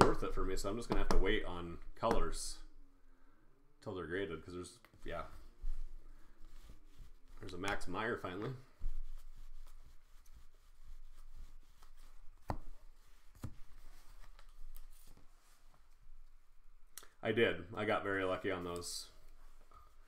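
Cards rustle and click in hands.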